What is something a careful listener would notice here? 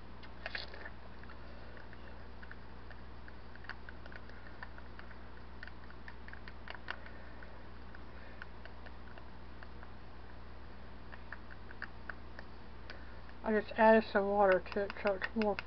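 A wooden stick scrapes and taps inside a plastic cup while stirring paint.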